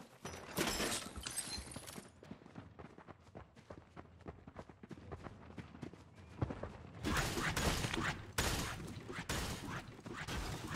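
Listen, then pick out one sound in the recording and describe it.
Footsteps run quickly across a wooden floor.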